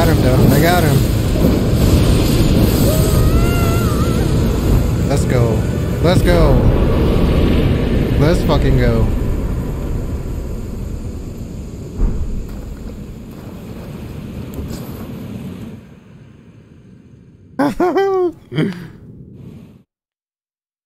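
A game's battle music and effects roar loudly, then fade.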